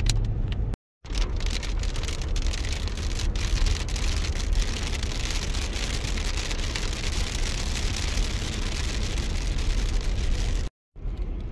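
Raindrops patter on a windshield.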